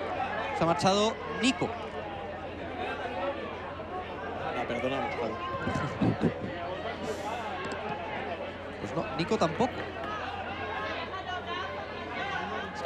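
Young players shout and call to each other across an open outdoor field.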